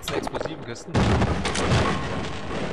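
A wooden crate smashes apart with splintering wood.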